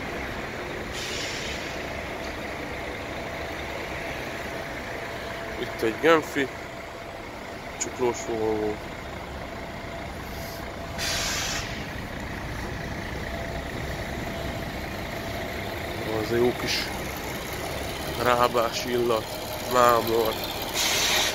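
Buses idle nearby with a steady low engine rumble.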